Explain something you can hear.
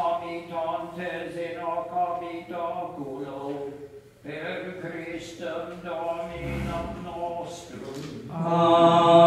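A man chants in a sung tone in a large echoing church.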